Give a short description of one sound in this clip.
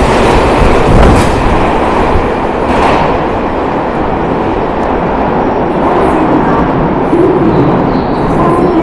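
An electric subway train pulls away and its rumble fades into a tunnel.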